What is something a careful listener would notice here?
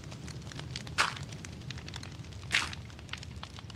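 Blocks are placed with short dull thuds.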